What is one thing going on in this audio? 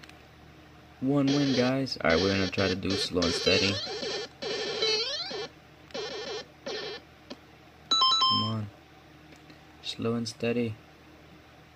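Retro game bleeps and jingles play from a handheld console's small speaker.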